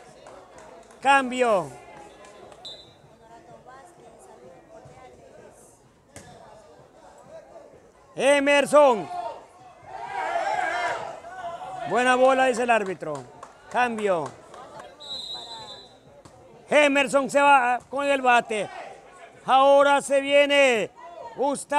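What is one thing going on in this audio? A crowd of men outdoors shouts and cheers in loud bursts.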